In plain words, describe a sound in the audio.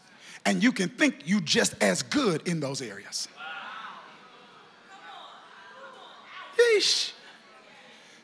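A man speaks with animation into a microphone, heard through loudspeakers in a large hall.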